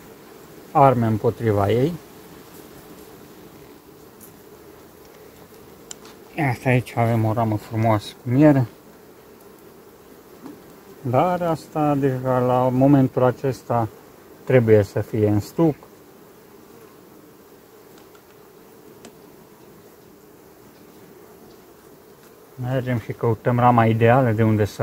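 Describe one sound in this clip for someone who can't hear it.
Bees buzz around an open hive.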